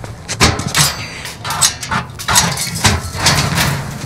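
Metal bars rattle as hands grip a grate.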